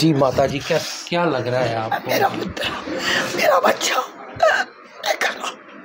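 A man asks questions close to a microphone.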